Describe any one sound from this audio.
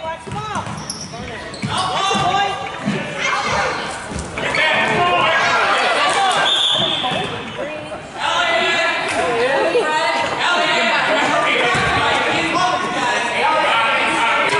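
Children shout and call out during a game.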